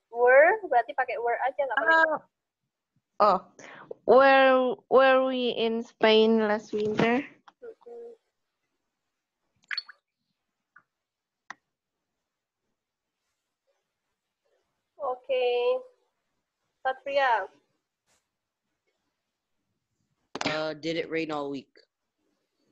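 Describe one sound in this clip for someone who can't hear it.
A woman speaks calmly through an online call, reading out sentences.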